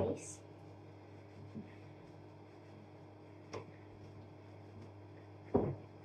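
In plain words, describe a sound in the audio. A towel rustles against a hook.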